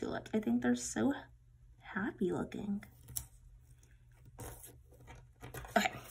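Sticker paper crinkles and peels softly close by.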